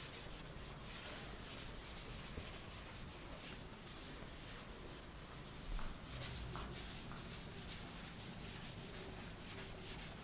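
A duster rubs and swishes across a chalkboard.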